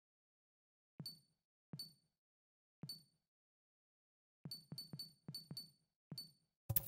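A game menu gives short, sharp blips as a selection cursor moves between items.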